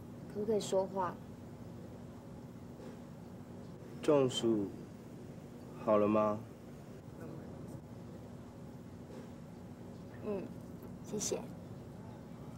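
A young woman speaks softly and hesitantly close by.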